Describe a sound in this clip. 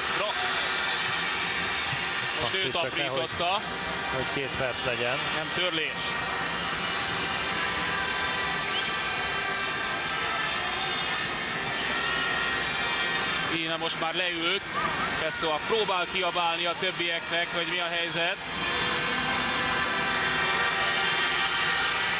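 A large crowd cheers and chants steadily in a big echoing hall.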